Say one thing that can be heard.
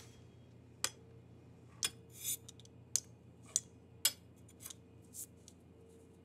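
A pastry wheel clicks and taps against a hard counter.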